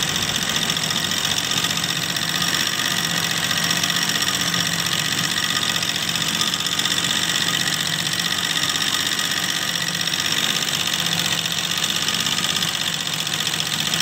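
An embroidery machine needle stitches in a fast, steady rattle.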